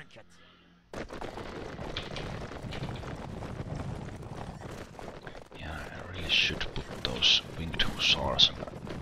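Many horses' hooves thunder across open ground.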